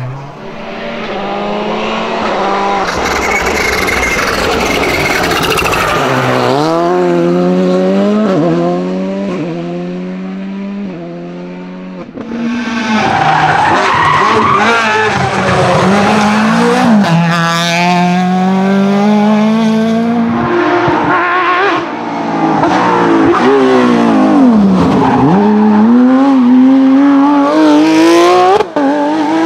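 A rally car engine revs hard and roars past close by.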